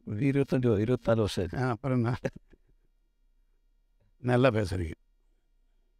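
An older man speaks with animation, close to a microphone.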